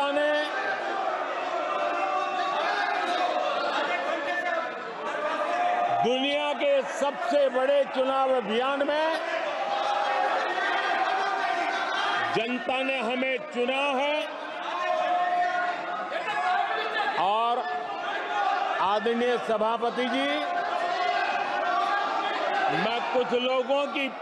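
An elderly man speaks forcefully into a microphone in a large hall.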